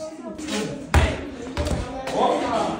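A child kicks a ball on hard ground.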